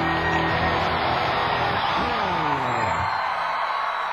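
An electric guitar plays loud, distorted chords and bends sharply down in pitch.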